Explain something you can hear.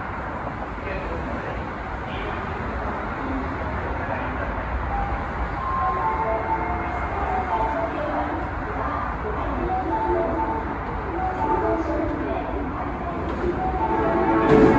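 A train approaches on rails and grows louder.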